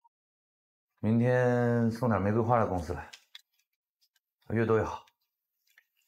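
A man speaks into a phone in a deep, calm voice.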